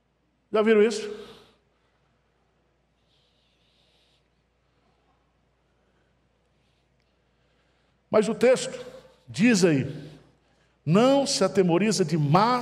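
A middle-aged man speaks with animation through a microphone.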